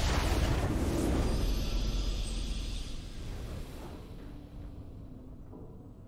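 A triumphant game fanfare swells and then slowly fades away.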